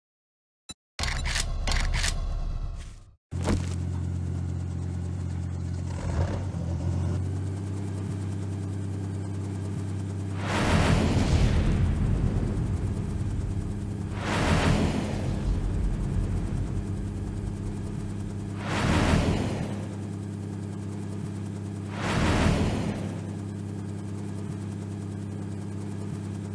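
A helicopter engine and rotor whir steadily.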